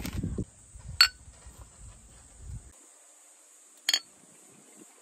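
Glass bottles clink together.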